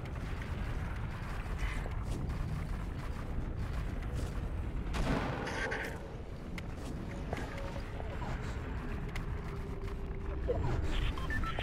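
Quick footsteps patter across hard ground.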